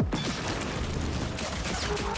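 A gun fires in bursts with fiery blasts.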